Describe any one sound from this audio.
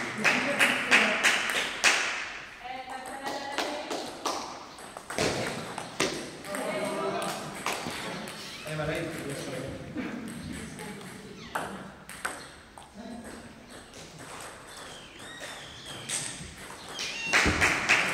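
A table tennis ball clicks rapidly back and forth off paddles and a table in an echoing hall.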